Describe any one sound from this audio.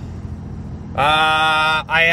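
A man sings out loudly close by.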